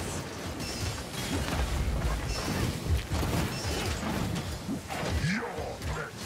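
A heavy gun fires in rapid, booming bursts.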